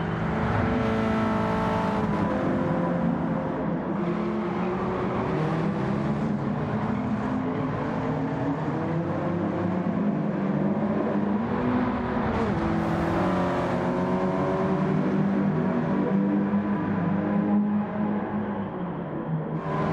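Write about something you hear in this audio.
Racing car engines roar and rev, shifting pitch as the cars accelerate and brake.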